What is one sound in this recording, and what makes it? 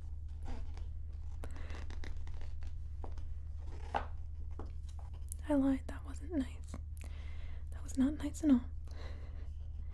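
Paper crinkles and rustles as a page is pressed flat.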